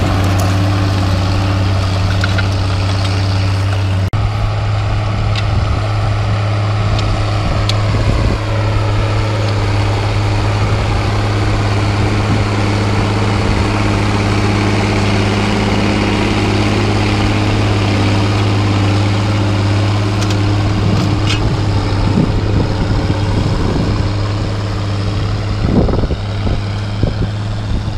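A tractor engine drones steadily nearby.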